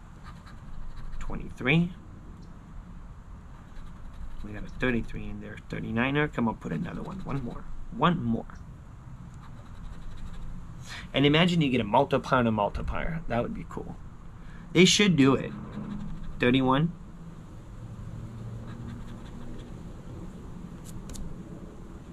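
A coin scratches across a ticket.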